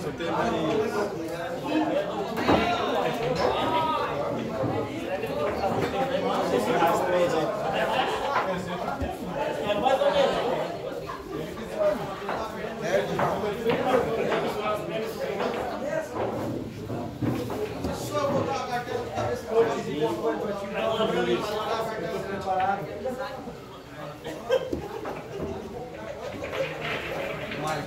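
Several men chat and call out nearby.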